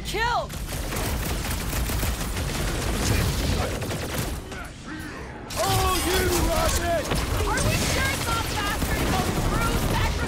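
Sci-fi energy guns fire in bursts of blasts.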